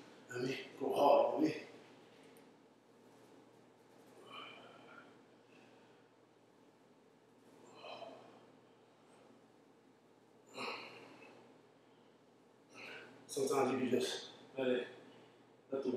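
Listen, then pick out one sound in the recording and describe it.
A man talks in short bursts close by.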